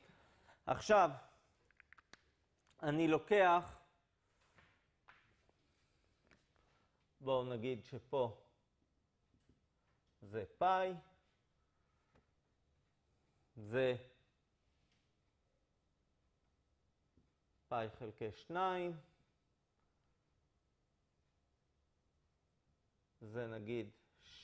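A man speaks calmly in short phrases with pauses, heard through a microphone.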